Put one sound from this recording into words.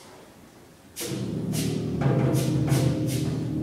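A large concert band bursts into loud music in an echoing hall.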